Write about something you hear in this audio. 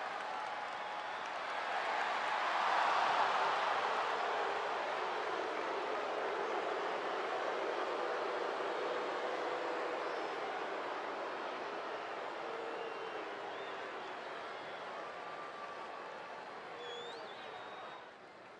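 A large stadium crowd roars and cheers, swelling loudly and then slowly fading.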